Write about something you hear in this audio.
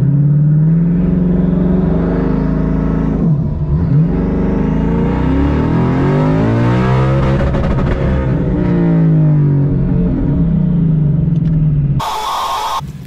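A car engine roars loudly, revving up and down as it accelerates.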